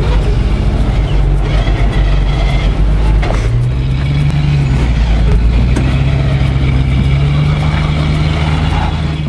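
A vehicle engine rumbles and revs.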